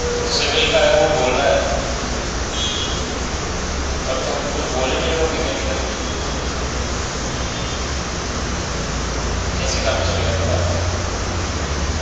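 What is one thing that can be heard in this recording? A man speaks calmly, with short pauses.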